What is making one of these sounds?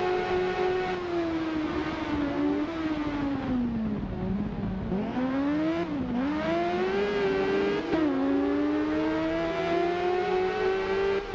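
A motorcycle engine drops in pitch as it slows for a corner, then revs up again.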